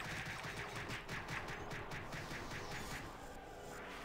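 Game spell effects tick and chime rapidly.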